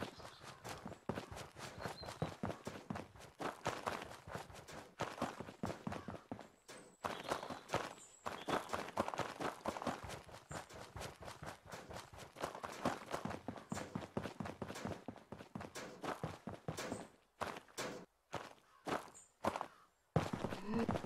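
Footsteps crunch through grass and over hard ground.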